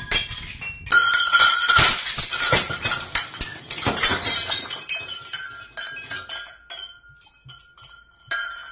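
Hanging glass bottles clink against each other.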